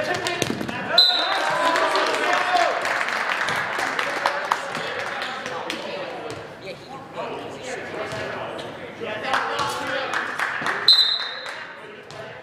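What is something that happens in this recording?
A referee's whistle blows short, sharp blasts.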